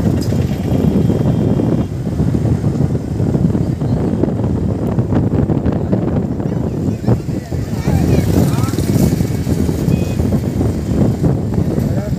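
A motor scooter engine hums close by.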